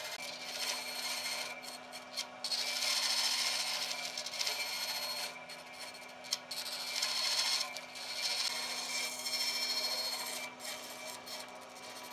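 A band saw cuts through a stack of wooden blocks.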